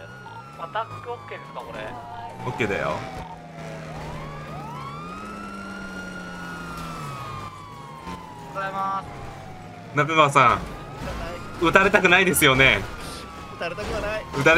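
A police siren wails, rising and falling throughout.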